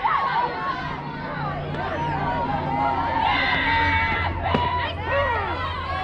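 Young women shout and cheer nearby, outdoors.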